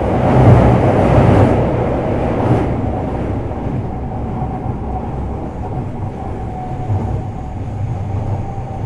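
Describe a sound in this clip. A stationary train hums steadily with a low rumble.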